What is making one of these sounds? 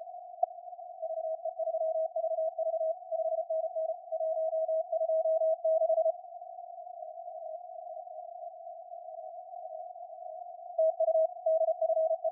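Morse code beeps sound steadily through a radio receiver.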